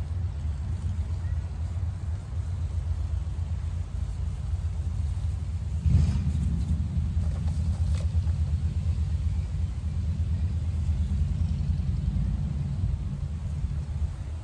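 Granules patter onto cabbage leaves.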